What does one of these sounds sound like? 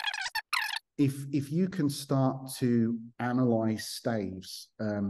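A man speaks with animation over an online call, close to the microphone.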